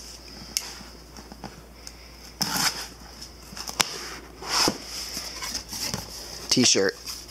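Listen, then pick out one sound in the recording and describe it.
Cardboard scrapes and rustles as a box is handled and opened.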